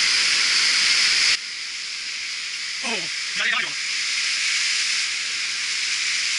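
A stream rushes and splashes over rocks close by.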